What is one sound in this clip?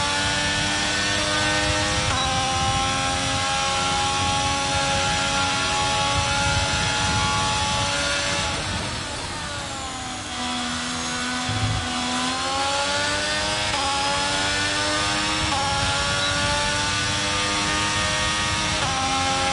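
A racing car engine screams at high revs, dropping in pitch as it brakes and rising again through the gears.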